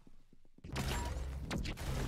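A laser gun fires in quick electronic zaps.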